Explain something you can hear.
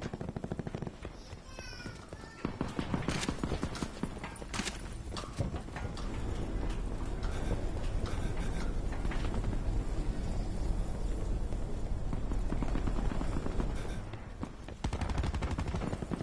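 Footsteps run quickly over hard ground and metal.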